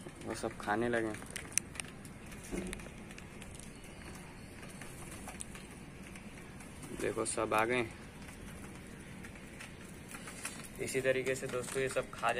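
Pigeons peck at food on a tray.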